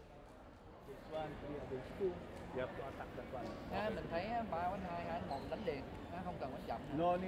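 A man speaks urgently to a group up close.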